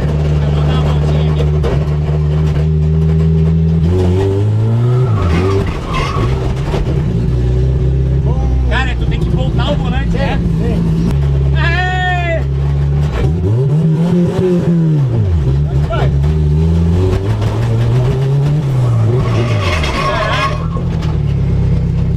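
A car engine roars and revs hard up and down.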